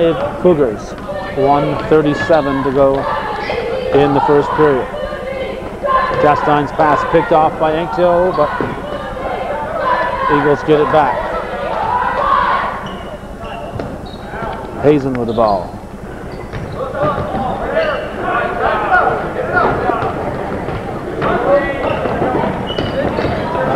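Voices of young men and spectators call out in an echoing gym.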